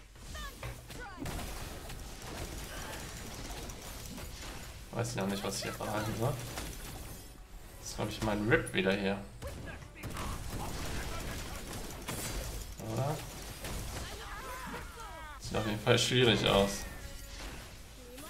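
Game battle effects clash and whoosh.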